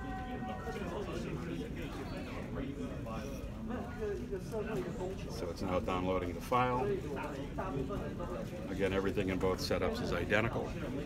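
A man talks calmly nearby, explaining.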